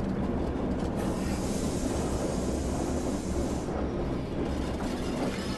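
Air brakes hiss loudly, then fade.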